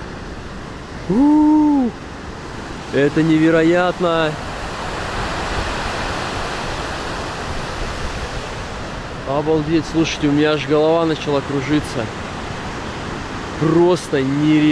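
Waves crash and surge against the shore below, with a steady roar of surf.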